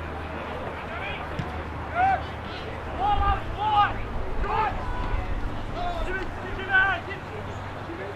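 Young men shout to one another across an open field.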